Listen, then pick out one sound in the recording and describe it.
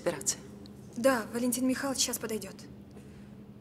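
A woman answers calmly, close by.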